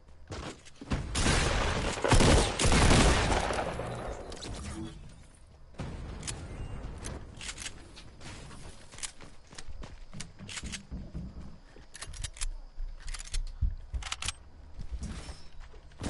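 Footsteps thud quickly on stairs and floors.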